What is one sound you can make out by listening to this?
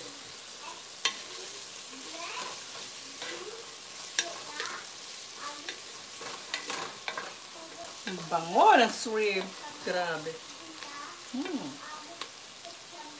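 A wooden spoon scrapes and knocks against a metal pot while stirring.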